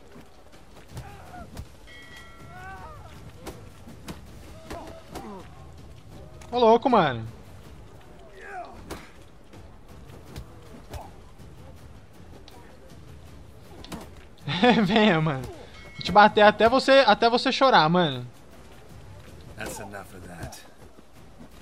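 Punches land with dull thuds in a fistfight.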